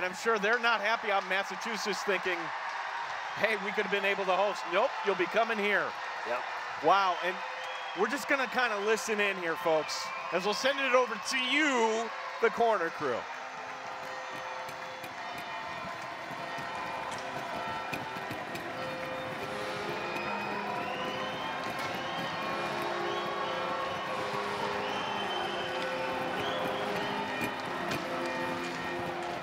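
A large crowd cheers and applauds in an echoing arena.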